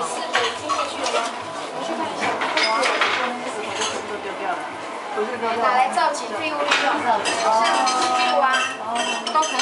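Metal utensils clink against a pot.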